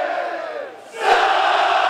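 A crowd roars loudly.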